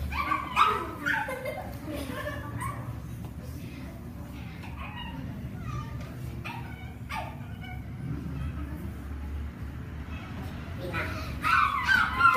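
Footsteps patter across a hard floor.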